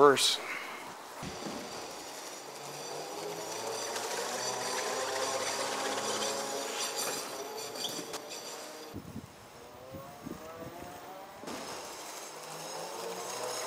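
An electric scooter hums softly as it rolls past.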